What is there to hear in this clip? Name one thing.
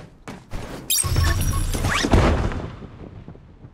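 A zipline whooshes and whirs loudly.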